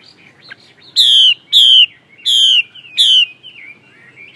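A songbird sings loud, clear, repeated whistling phrases close by.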